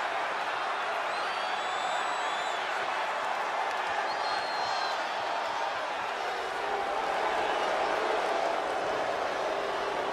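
A large arena crowd cheers.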